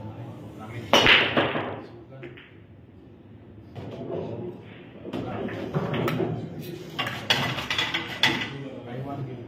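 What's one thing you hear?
Pool balls clack against each other and roll across the table.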